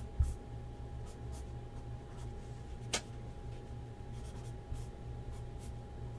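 A marker pen squeaks briefly on a card.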